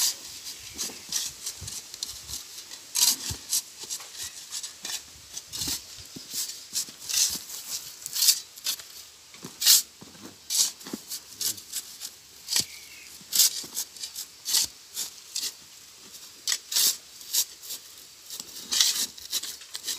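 Shovels scrape and scoop through sand and gravel.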